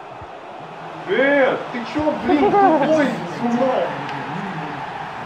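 A young man shouts excitedly close by.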